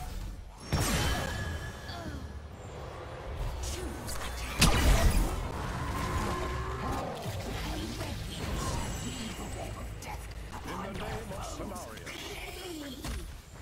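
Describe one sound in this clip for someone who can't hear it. Video game combat sound effects clash and zap.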